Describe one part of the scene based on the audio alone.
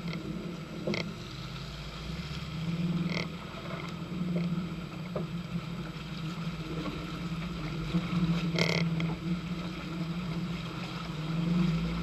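A vehicle engine rumbles steadily up close.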